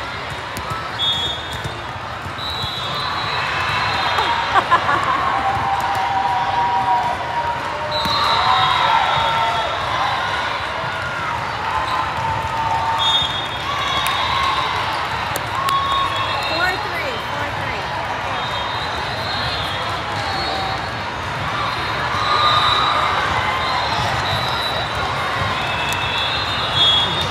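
A crowd chatters and cheers, echoing through a large hall.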